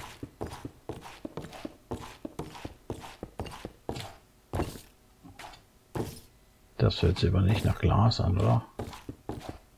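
Footsteps thud steadily on wooden stairs.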